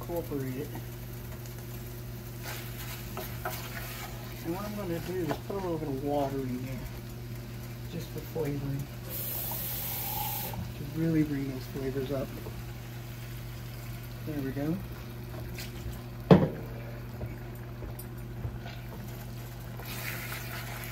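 A wooden spoon scrapes and stirs inside a metal pot.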